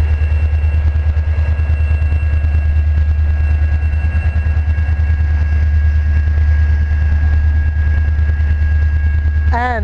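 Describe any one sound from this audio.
Freight cars clatter and squeal over the rails.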